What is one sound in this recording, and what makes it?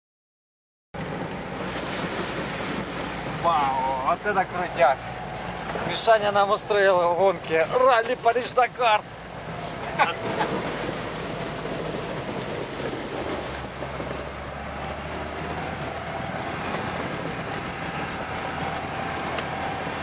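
A car engine hums steadily while driving over a bumpy dirt road.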